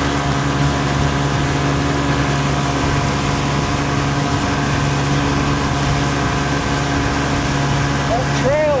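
Water rushes against a boat's hull.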